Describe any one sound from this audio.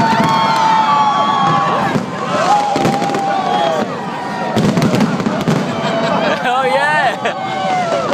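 Fireworks whistle and screech as they shoot up.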